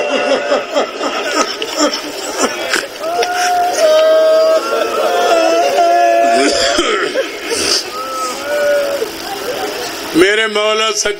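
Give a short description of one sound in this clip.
A man chants with emotion into a microphone, heard through a loudspeaker.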